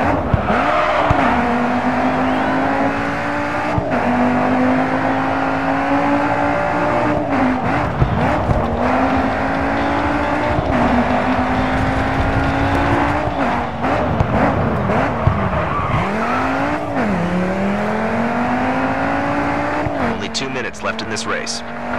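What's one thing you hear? Tyres squeal and skid on the road through the corners.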